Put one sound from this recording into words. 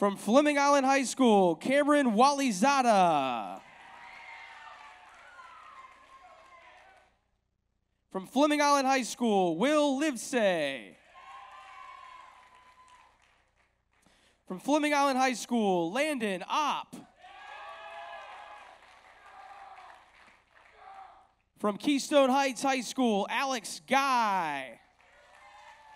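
A man announces names through a loudspeaker in a large echoing hall.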